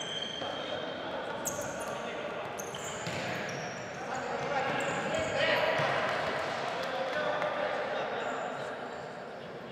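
Sneakers squeak sharply on a hard indoor court.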